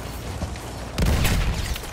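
A loud explosion bursts close by.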